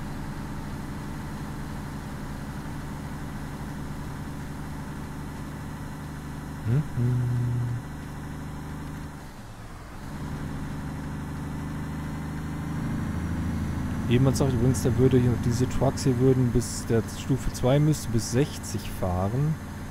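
Tyres rumble over a bumpy gravel track.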